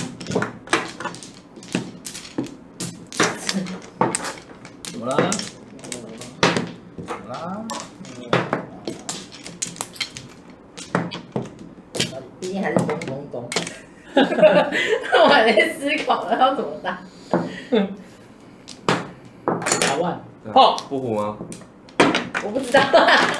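Mahjong tiles clack and click against each other and the table.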